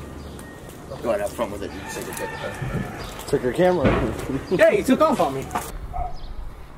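A man talks loudly with animation outdoors.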